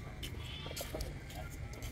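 Footsteps pass close by on a paved path.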